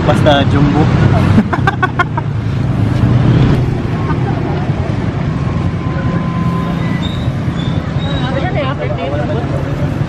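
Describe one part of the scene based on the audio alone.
Street traffic rumbles steadily outdoors.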